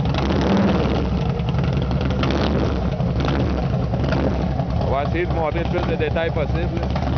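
A motorcycle engine idles with a deep, rumbling throb close by.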